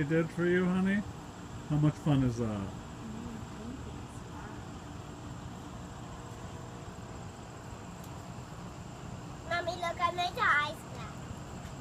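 A young girl talks nearby in short bursts.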